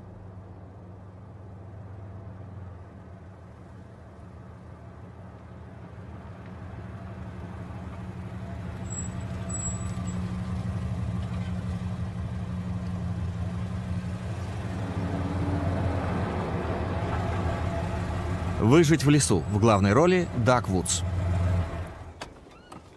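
A vehicle engine rumbles as it approaches and passes close by.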